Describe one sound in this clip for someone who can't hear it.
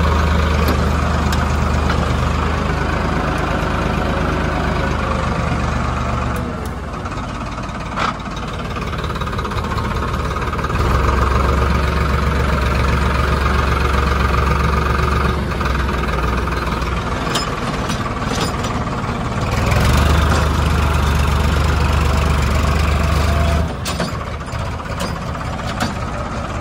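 A tractor engine rumbles steadily close by, growing louder at times as it works.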